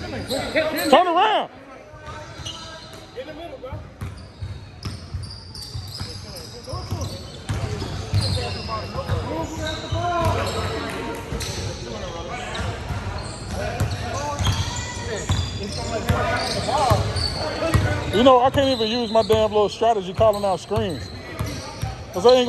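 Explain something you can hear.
A basketball bounces repeatedly on a hard floor in a large echoing hall.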